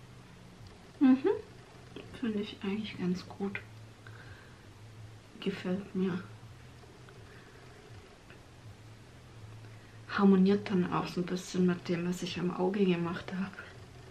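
A young woman talks calmly and close to a microphone, in short bursts with pauses.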